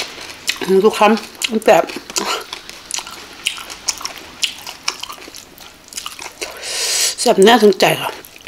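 Wet food squelches and rustles as a hand picks through it.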